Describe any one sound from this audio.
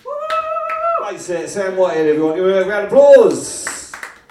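A young man sings loudly into a microphone.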